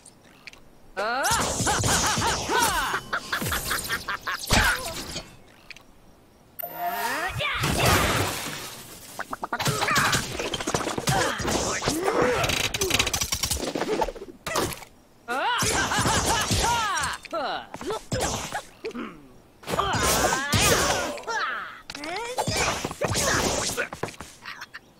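Weapons strike and clash in bursts during a cartoon battle.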